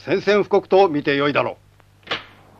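A middle-aged man speaks sternly and loudly nearby.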